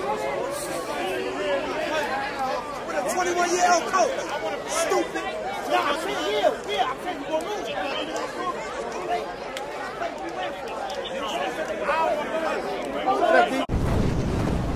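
A crowd of young men shouts and laughs excitedly nearby.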